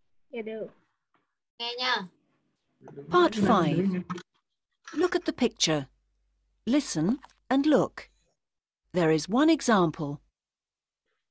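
A woman speaks in short, clear phrases through an online call.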